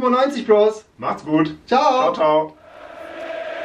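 A young man speaks cheerfully, close by.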